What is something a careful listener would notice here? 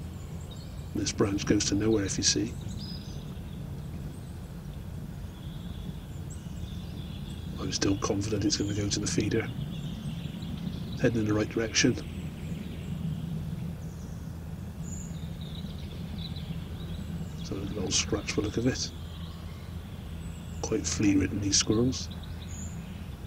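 A bird calls out in short harsh bursts in a quiet wood.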